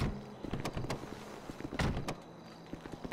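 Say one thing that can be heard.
Footsteps scuff on concrete.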